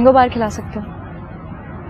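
A young woman asks a question calmly, close by.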